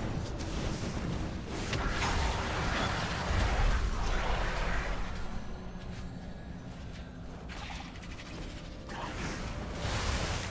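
Dull blows thump during a fight.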